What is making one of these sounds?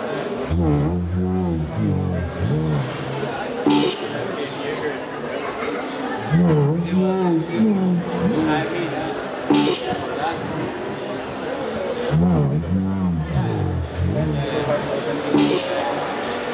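A man talks nearby in a relaxed voice.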